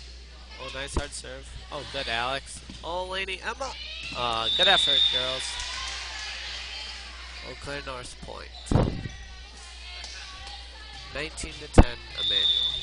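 A volleyball thumps sharply as players hit it.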